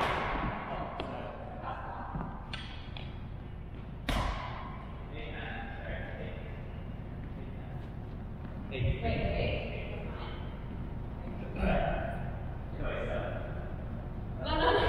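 Shuttlecocks pop off badminton rackets in a large echoing hall.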